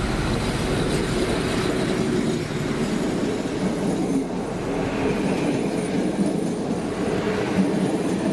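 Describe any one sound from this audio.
Passenger coach wheels clatter over rail joints.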